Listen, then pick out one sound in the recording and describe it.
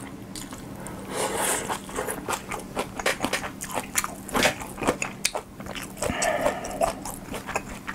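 A young man slurps noodles close to a microphone.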